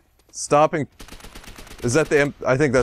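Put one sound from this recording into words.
A gun fires a rapid burst of shots.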